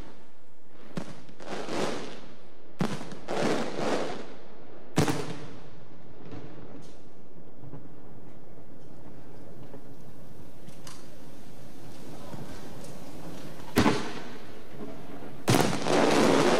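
Fireworks burst with loud booms outdoors.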